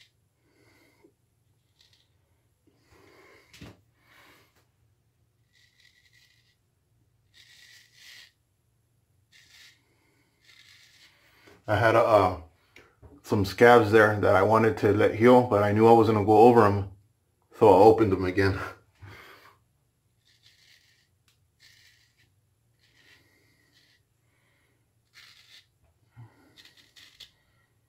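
A razor scrapes softly over stubble.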